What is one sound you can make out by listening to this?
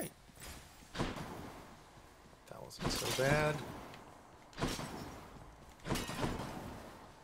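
Sharp magical blasts and hits burst out now and then.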